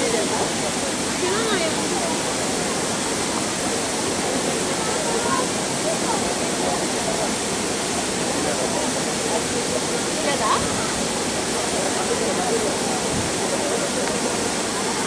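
Water sprays and hisses steadily outdoors.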